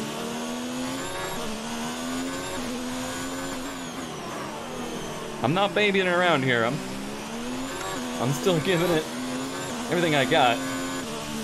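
A racing car engine hums steadily, its pitch rising and falling as it changes gear.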